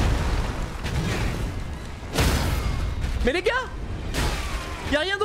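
Heavy metal weapons clash and thud in a fight.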